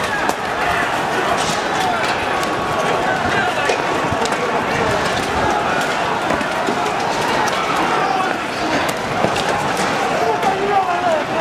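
A large crowd shouts and roars outdoors.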